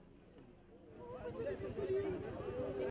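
Several women talk with animation close by.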